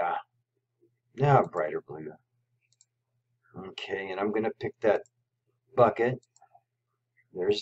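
A man talks calmly and close to a microphone, in short phrases with pauses.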